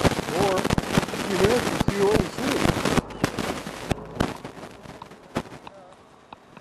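Wind rumbles loudly against a microphone outdoors, then drops away.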